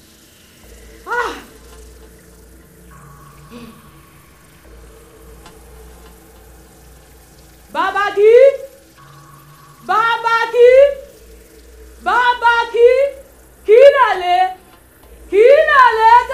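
A young woman cries out loudly in long, wavering bursts of prayer.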